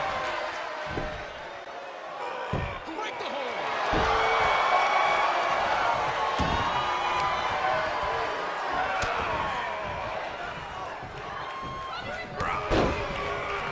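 Bodies thud heavily onto a mat.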